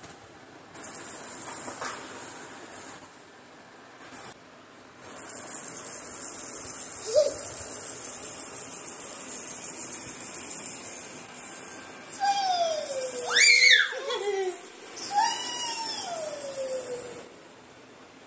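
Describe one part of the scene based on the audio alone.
A toy rattle shakes with a hissing rattle.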